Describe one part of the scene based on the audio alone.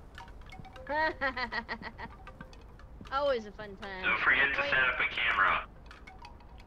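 A man speaks calmly over a radio headset.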